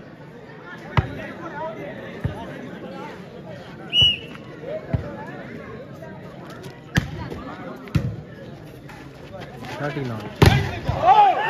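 A volleyball is struck hard with a sharp slap.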